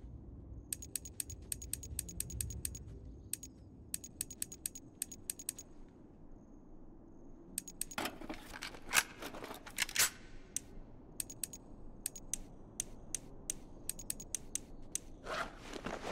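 Short menu clicks tick in quick bursts.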